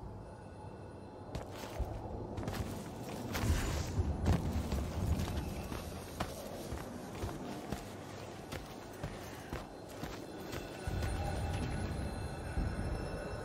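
Footsteps tread over stone and earth.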